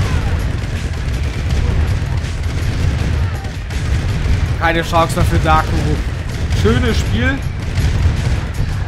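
Tank guns fire and explosions rumble in a busy battle.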